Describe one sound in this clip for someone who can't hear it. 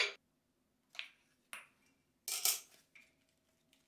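A metal clip clicks shut.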